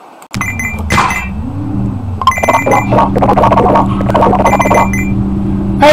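Video game coins chime as they are collected.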